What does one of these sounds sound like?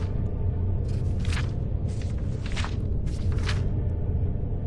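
Book pages turn and rustle.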